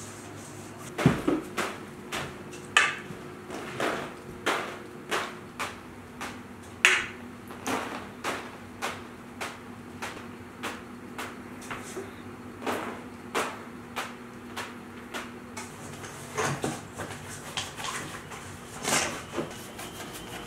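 Drops of liquid splash onto hard ground one after another.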